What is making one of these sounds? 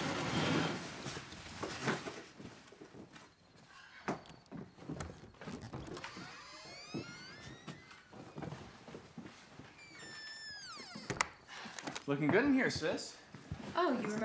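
A sheet rustles as a woman lifts it off a sofa.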